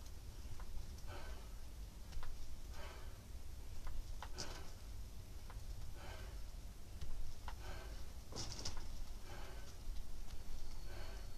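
A man breathes out hard in a steady rhythm.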